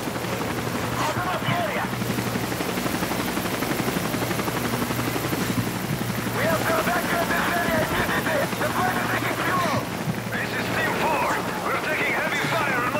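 A man speaks urgently.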